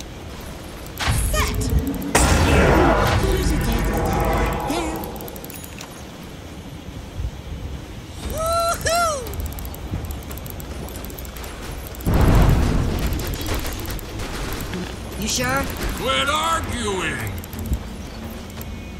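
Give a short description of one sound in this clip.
Game spell blasts boom and crash in loud bursts during a fight.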